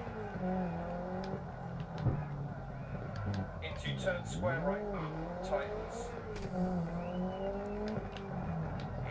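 A rally car engine revs up and down.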